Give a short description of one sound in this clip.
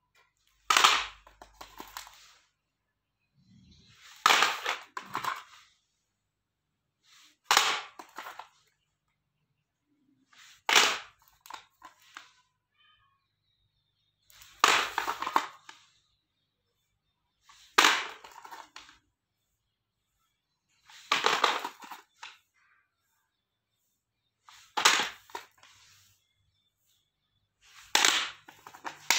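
Plastic cassette cases clatter onto a hard tile floor, again and again at a steady pace.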